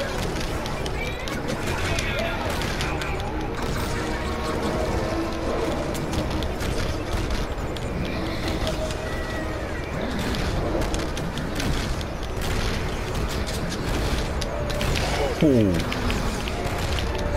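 Heavy blows land with deep, crashing thuds.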